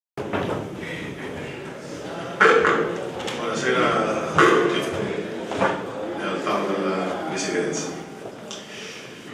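An elderly man speaks steadily through a microphone in a room that echoes a little.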